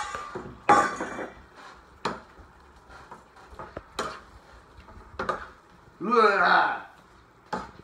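A metal spatula scrapes and clacks against a pan while food is stirred.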